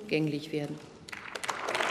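A middle-aged woman speaks calmly into a microphone in a large hall.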